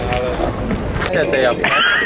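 A young man talks on a phone nearby.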